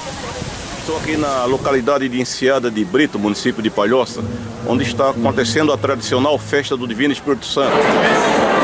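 An elderly man speaks close to the microphone.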